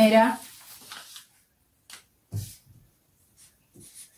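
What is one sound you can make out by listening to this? Paper rustles and slides across a table.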